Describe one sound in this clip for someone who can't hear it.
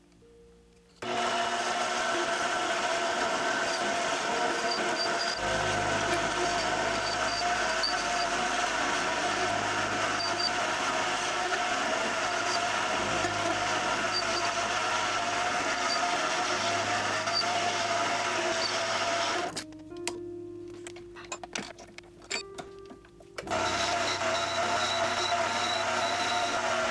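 A cutting tool scrapes and hisses against turning metal.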